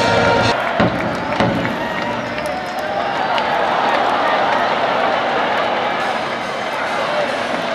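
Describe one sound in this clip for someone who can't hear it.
A large stadium crowd cheers and chants throughout.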